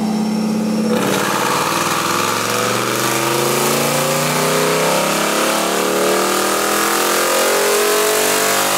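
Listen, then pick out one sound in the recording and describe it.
A car engine shifts gear and its revs climb again.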